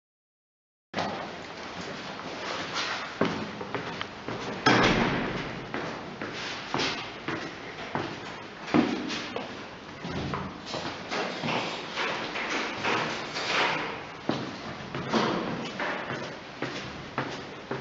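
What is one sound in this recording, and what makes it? Footsteps walk down stone stairs in an echoing stairwell.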